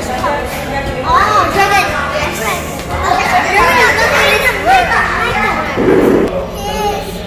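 Several children talk with excitement.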